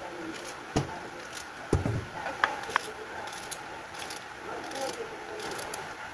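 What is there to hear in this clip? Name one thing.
A knife slices through a cucumber with sharp clicks.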